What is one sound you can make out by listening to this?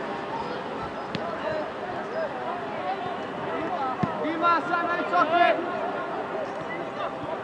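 Players shout to each other across an open field, outdoors.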